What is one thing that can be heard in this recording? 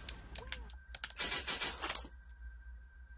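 Small metal lock pins click and rattle.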